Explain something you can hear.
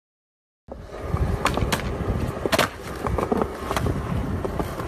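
A skateboard deck clacks sharply against concrete.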